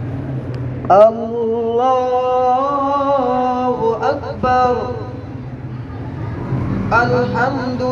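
A man chants a long, melodic recitation through a loudspeaker in a large echoing hall.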